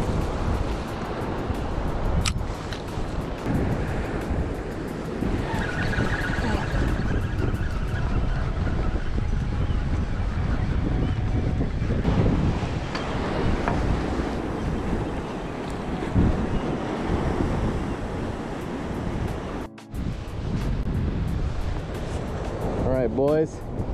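Waves crash and wash against rocks nearby.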